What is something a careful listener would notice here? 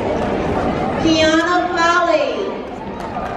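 A woman calls out happily.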